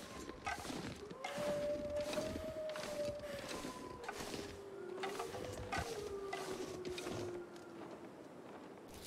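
Footsteps crunch steadily through deep snow.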